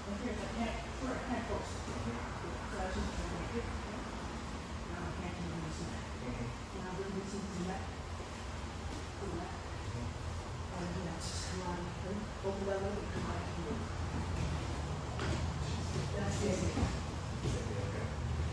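A fan hums steadily in an echoing hall.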